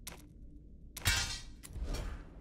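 A crunching, shattering game sound effect plays as an item is destroyed.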